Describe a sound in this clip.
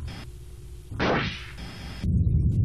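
An explosion bursts with a loud whoosh.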